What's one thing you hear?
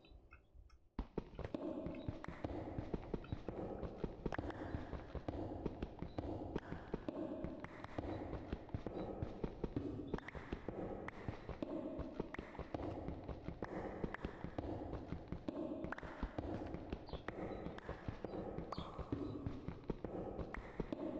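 A pickaxe chips rapidly at stone, block after block.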